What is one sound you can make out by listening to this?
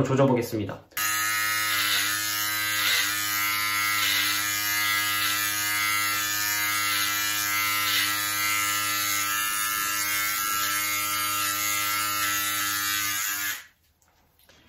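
Electric hair clippers buzz steadily, close by.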